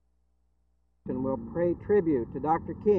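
A middle-aged man speaks calmly into a microphone outdoors.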